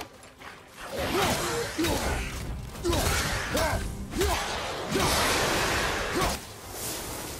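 Blows and weapon strikes thud and slash.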